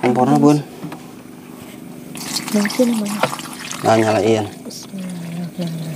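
Water pours from a plastic jug.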